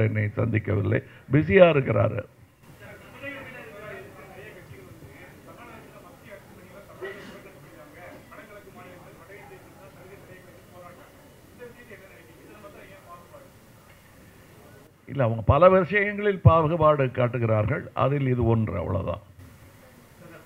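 A middle-aged man speaks with animation into a microphone, heard through loudspeakers.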